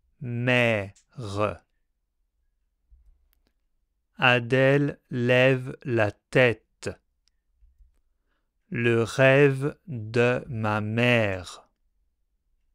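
A man speaks clearly and slowly into a close microphone, pronouncing short words.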